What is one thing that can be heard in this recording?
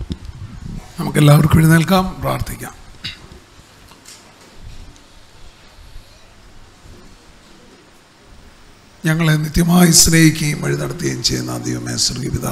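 An older man chants through a microphone in a large echoing hall.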